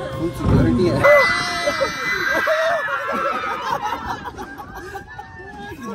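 Young men laugh loudly nearby.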